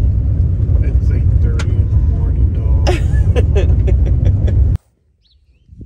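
A woman talks and laughs with animation close by.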